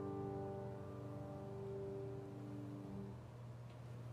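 A choir holds a final sung chord in a large room.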